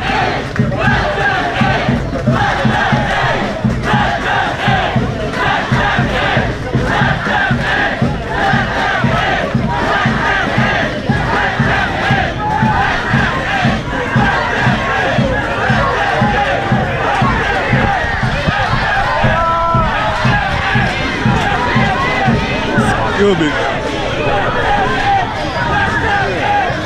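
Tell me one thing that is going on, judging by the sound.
Many voices shout and talk at once in a crowd close by.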